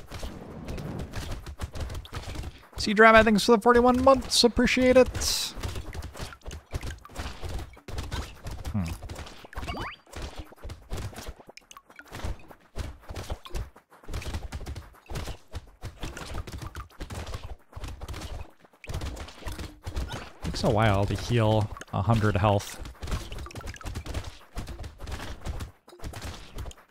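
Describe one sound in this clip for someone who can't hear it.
Rapid video game gunfire crackles and pops without a break.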